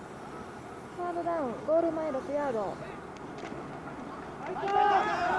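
A young man shouts loud, drawn-out calls from across an open field.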